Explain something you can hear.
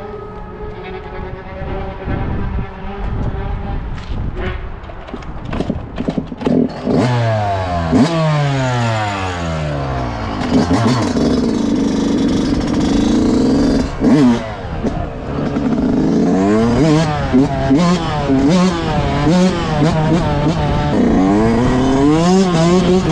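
A dirt bike engine idles close by, then revs up and down loudly.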